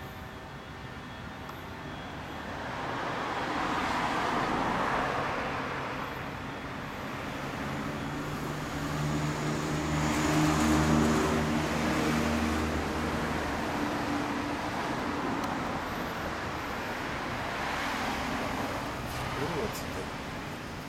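A motorcycle engine idles close by with a deep, steady rumble.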